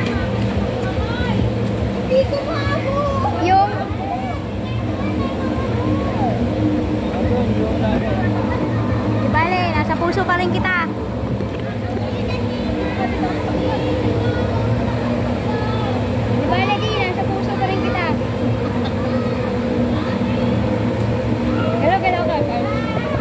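Children shout and squeal nearby.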